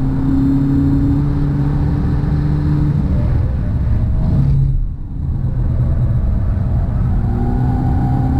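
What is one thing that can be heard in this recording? A car engine roars loudly from inside the cabin, easing off as the car brakes and then pulling again.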